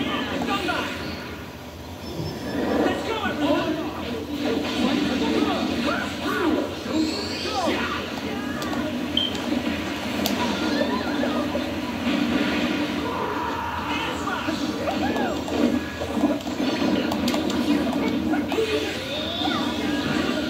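Video game fighting sounds and music play from a television.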